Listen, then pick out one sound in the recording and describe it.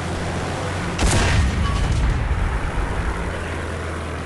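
A tank gun fires with a loud boom and a rumbling explosion.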